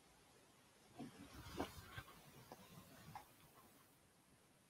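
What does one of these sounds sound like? A woman handles small objects close by, with soft knocks and rustling.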